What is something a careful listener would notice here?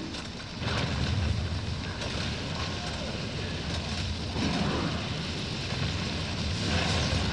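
Fighting sound effects from a video game clash and crackle.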